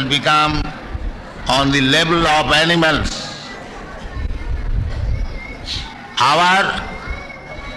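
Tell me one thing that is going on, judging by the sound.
An elderly man speaks in bursts into a microphone, heard through an old recording.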